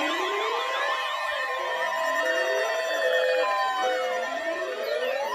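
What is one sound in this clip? An electronic alarm beeps in short, steady tones.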